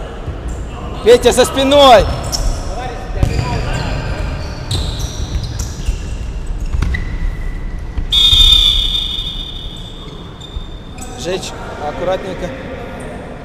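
Players' shoes squeak sharply on a hard court in a large echoing hall.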